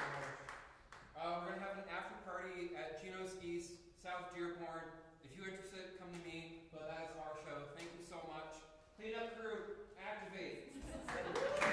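A woman speaks calmly in a large echoing hall.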